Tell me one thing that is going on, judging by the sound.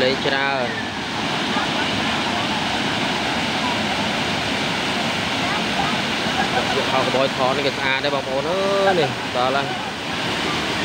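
Young women and men chatter and call out nearby with lively voices.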